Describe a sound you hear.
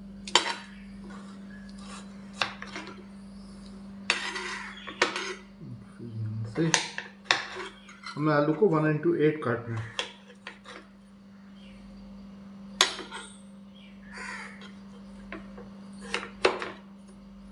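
A knife chops through potatoes on a cutting board with sharp knocks.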